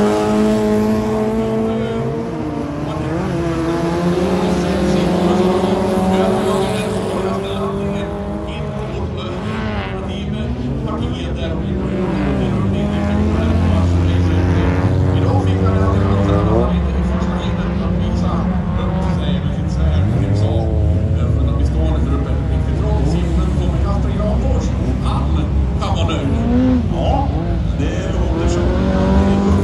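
Racing car engines rise and fall in pitch as the cars speed up and shift gears.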